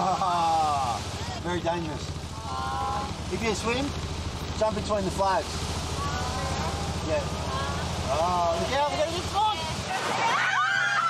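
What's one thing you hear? Waves break on a beach.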